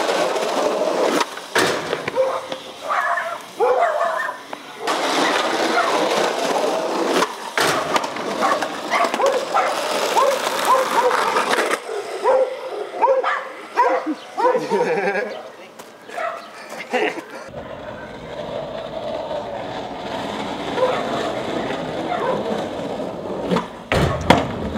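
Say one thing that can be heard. A skateboard clacks and lands on pavement.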